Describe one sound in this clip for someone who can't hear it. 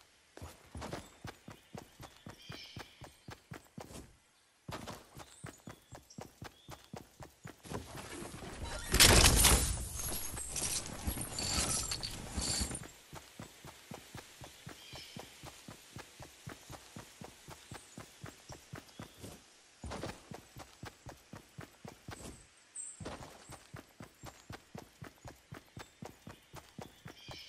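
Quick footsteps run steadily over grass and dirt.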